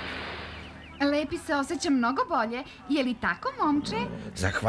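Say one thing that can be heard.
A young woman speaks brightly.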